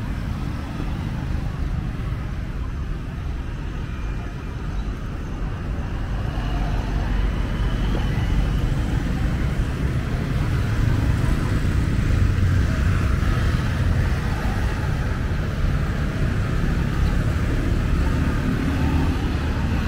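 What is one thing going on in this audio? Motorbikes buzz past close by.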